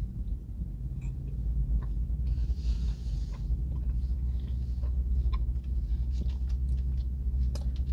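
A man chews food with his mouth closed, with soft wet smacking sounds.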